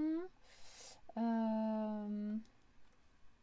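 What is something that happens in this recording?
A woman speaks close to a microphone, drawing out her words.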